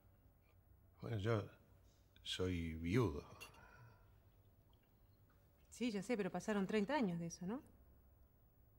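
An older man speaks in a low, serious voice nearby.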